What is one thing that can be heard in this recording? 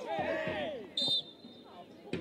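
A referee's whistle blows sharply once.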